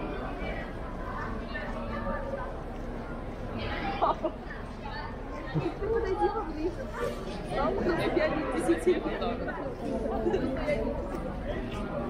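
Several men and women chat nearby in a lively outdoor crowd.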